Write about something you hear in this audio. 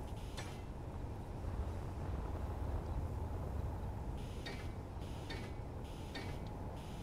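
A welding tool hums with a low, steady drone.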